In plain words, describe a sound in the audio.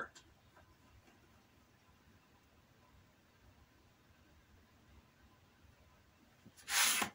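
Small metal parts click and rattle softly between fingers.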